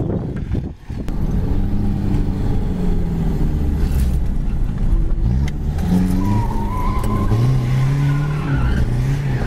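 A car engine hums and revs from inside the car as it drives.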